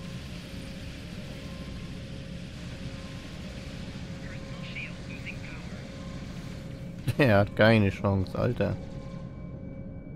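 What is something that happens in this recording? Energy weapons fire and crackle in short bursts.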